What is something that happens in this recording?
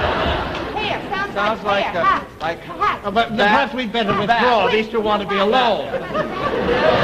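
A man shouts excitedly at close range.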